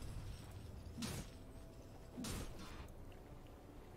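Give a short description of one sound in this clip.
A magic spell whooshes and crackles in a burst.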